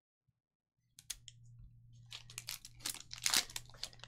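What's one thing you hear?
A foil wrapper crinkles as it is handled.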